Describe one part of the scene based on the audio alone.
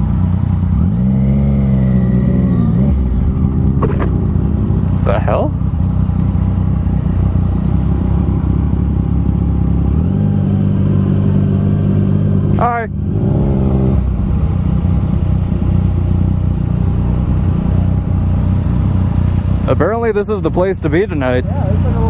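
Wind rushes past loudly as the motorcycle rides.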